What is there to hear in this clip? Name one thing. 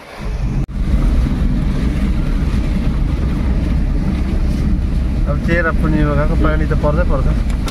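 Rain patters on the car.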